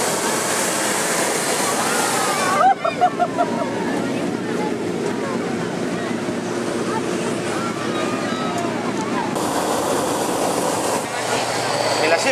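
A gas burner roars loudly in short and long blasts.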